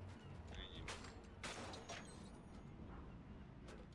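A metal box door creaks open with a clunk.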